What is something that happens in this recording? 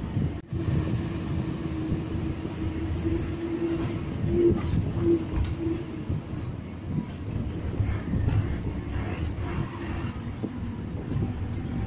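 A bus body rattles and knocks over the road.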